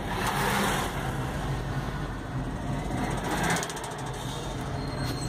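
A car's engine hums as it drives along a road.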